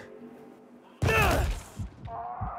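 A heavy thud lands with a loud impact.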